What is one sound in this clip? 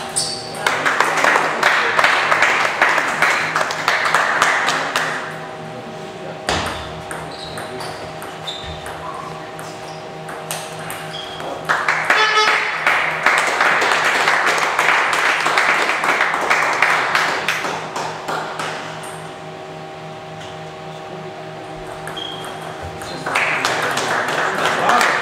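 A table tennis ball clicks back and forth off paddles and the table in quick rallies.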